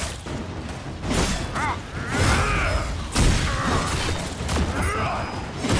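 A huge beast growls and roars.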